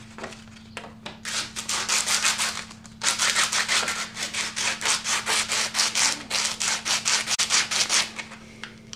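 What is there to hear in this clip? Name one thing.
Wood is rubbed back and forth by hand with a rasping sound.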